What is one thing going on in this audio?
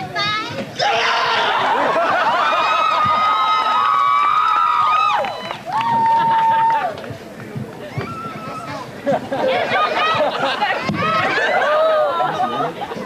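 A crowd cheers and shouts close by.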